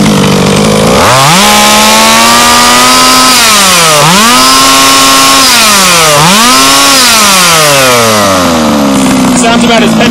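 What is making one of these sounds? A small engine revs up and down several times.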